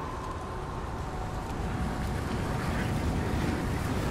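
Sparks hiss and crackle.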